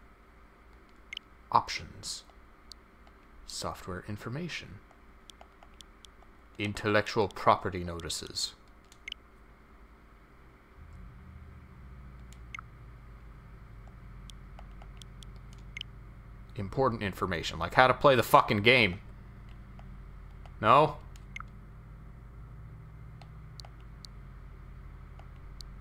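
Soft interface clicks tick now and then as menu choices change.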